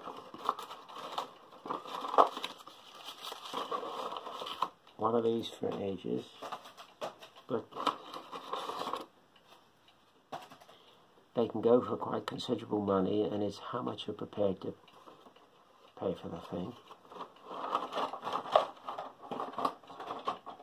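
Paper pages rustle as a booklet is handled.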